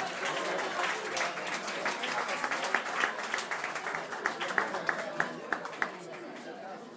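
An acoustic guitar is strummed briskly through loudspeakers.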